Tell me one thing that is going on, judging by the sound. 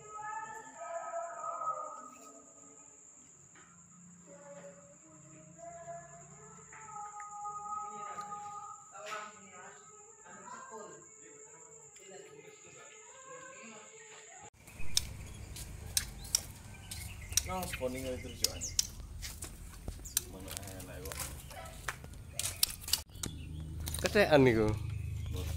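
Caged birds chirp and sing nearby.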